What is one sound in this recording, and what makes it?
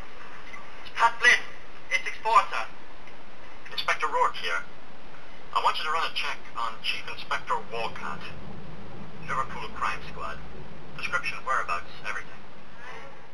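A man speaks firmly and close by into a telephone.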